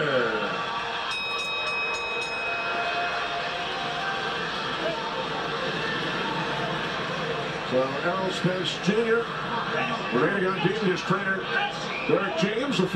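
A crowd murmurs and chatters in the background.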